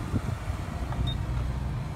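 A finger presses a plastic button with a click.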